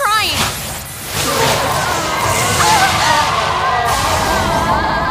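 A loud blast roars and rumbles.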